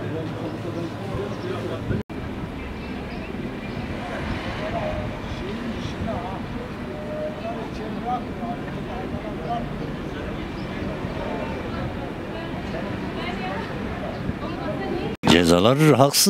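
Street crowd chatter murmurs outdoors.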